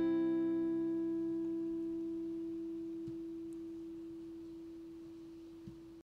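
An acoustic guitar chord rings out and slowly fades away.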